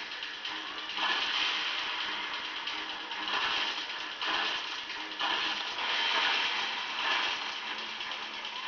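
Video game explosions burst through a television speaker.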